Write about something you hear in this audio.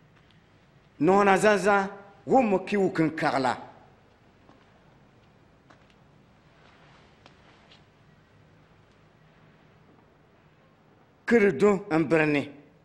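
A middle-aged man speaks firmly nearby, in short bursts.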